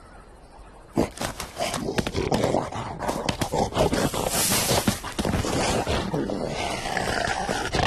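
Animals run fast and scuffle through dry grass.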